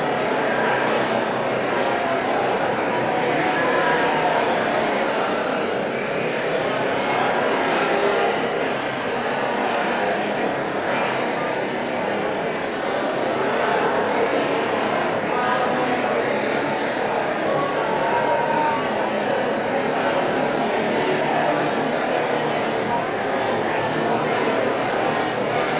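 A woman speaks calmly into a microphone, in a large room with echo.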